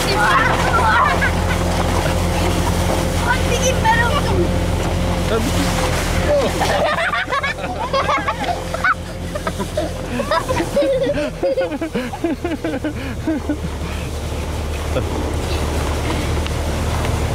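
Young children shout and laugh excitedly outdoors.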